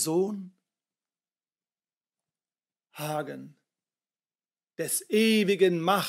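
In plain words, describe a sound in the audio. A middle-aged man reads aloud expressively from close by, with pauses.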